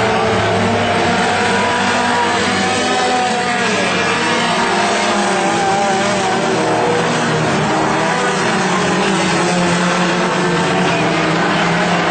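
Modified stock car engines roar at full throttle as the cars race past.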